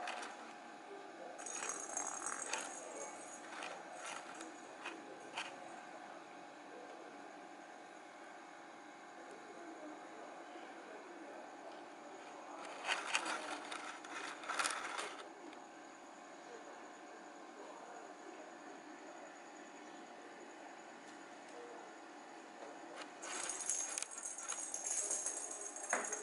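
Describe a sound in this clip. A kitten's paws patter softly on a hard floor.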